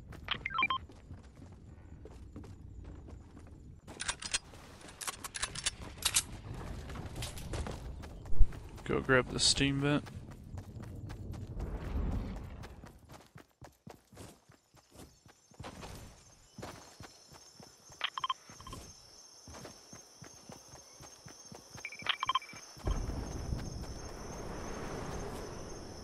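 Quick footsteps patter over the ground.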